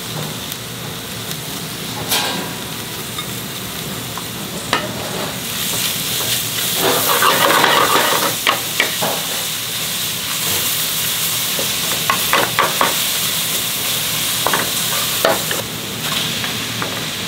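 Vegetables sizzle in a hot pot.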